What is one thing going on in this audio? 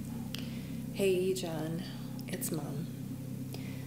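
An older woman speaks briefly and quietly nearby.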